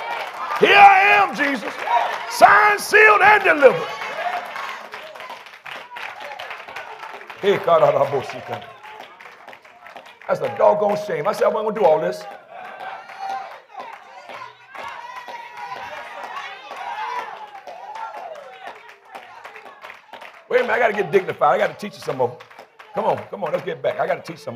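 A man preaches loudly and passionately into a microphone in a reverberant hall.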